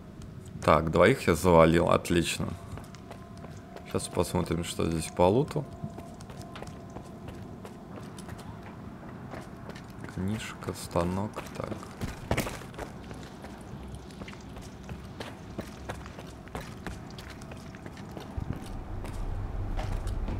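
Footsteps scuff across a hard floor.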